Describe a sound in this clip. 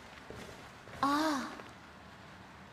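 A book thumps open with a rustle of pages.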